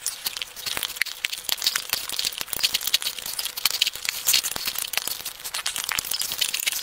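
A man slurps and chews food loudly and close to a microphone.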